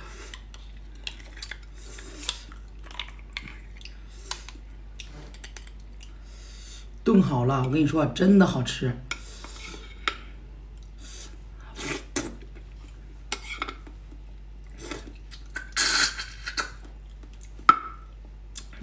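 A young woman slurps and chews food close to a microphone.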